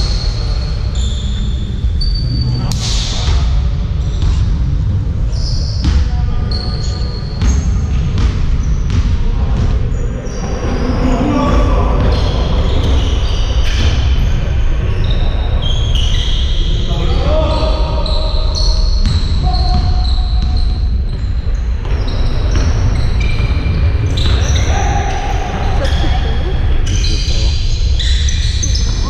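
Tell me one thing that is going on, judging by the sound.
A basketball bounces with hollow thumps.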